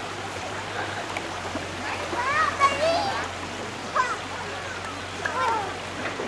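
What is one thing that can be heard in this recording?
Swimmers splash and kick in the water.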